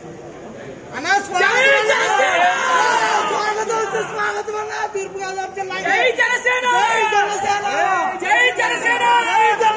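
A crowd of young men shout and cheer loudly and excitedly.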